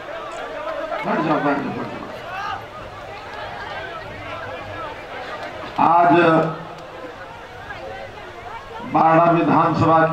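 An elderly man speaks loudly into a microphone over loudspeakers outdoors.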